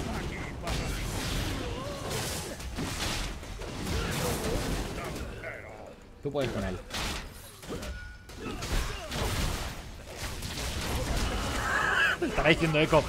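Game spell effects and hits crash and whoosh in a fast fight.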